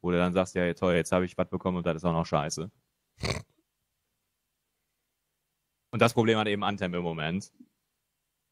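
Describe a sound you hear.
A man speaks with animation over an online call, close to a microphone.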